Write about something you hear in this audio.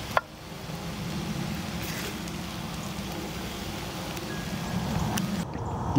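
A spatula scrapes food onto a plate.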